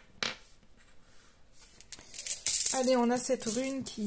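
A small stone taps down onto a hard tabletop.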